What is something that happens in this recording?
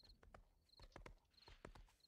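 A horse's hooves thud as it trots on dirt.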